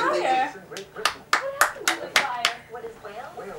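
A woman claps her hands close by.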